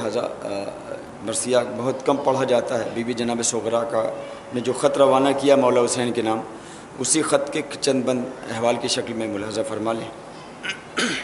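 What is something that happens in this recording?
A man chants melodically into a microphone, heard through a loudspeaker.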